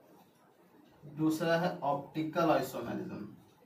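A man speaks clearly and calmly, close by.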